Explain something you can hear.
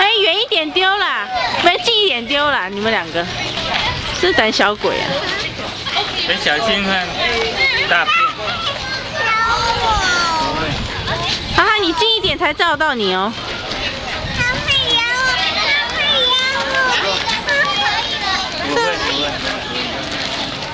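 A crowd of voices murmurs in the background outdoors.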